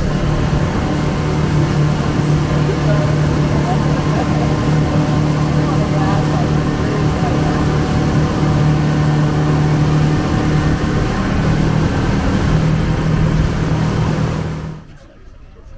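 Water rushes and splashes past a moving boat's hull.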